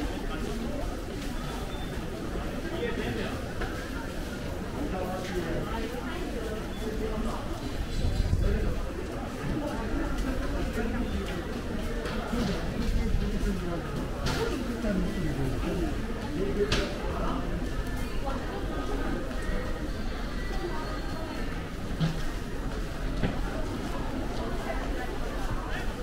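Footsteps of many people echo through a large indoor hall.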